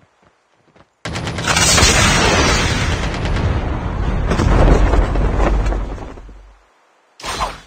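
Wind rushes loudly past during a glide through the air.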